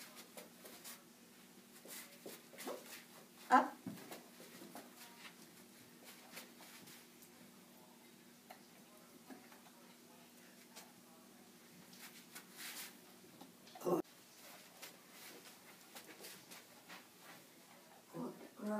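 A dog's paws tap on a plastic bowl.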